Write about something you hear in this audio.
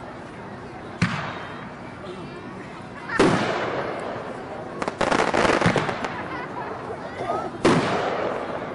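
Fireworks burst with loud booms that echo away.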